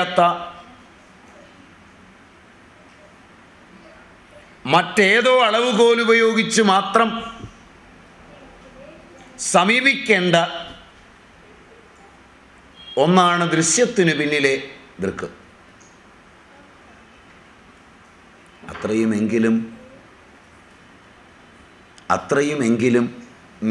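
An elderly man speaks calmly into a microphone, in short phrases with long pauses.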